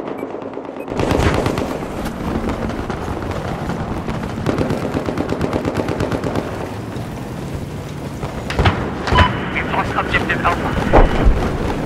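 Rapid gunfire rattles close by.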